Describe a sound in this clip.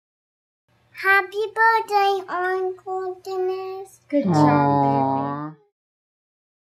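A young child speaks in a small, high voice.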